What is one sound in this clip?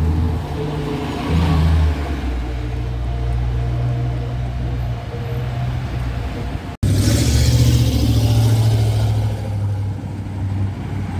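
Traffic hums along a street outdoors.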